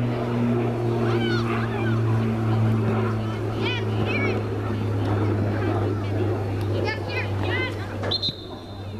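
Children shout and call out across an open field.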